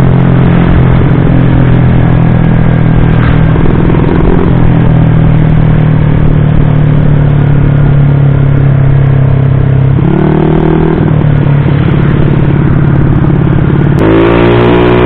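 A bored-out automatic scooter engine drones while cruising on a road.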